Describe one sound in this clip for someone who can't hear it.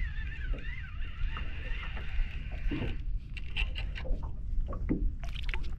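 Wind rumbles steadily outdoors on open water.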